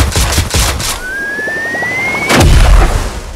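A rising whistle sounds.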